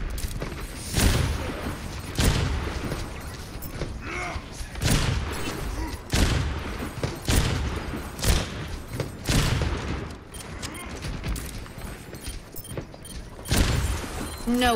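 Explosions blast nearby.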